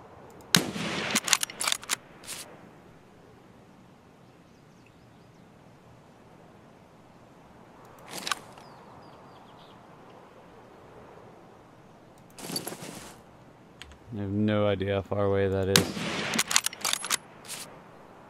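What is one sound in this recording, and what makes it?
A rifle bolt clicks and clacks as it is worked.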